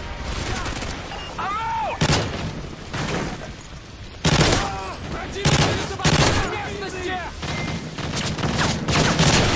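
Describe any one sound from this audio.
Gunshots crack in rapid bursts close by.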